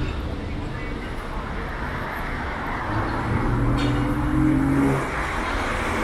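A bus engine drones as it drives past.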